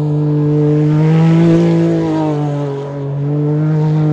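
Studded tyres spin and spray chips of ice.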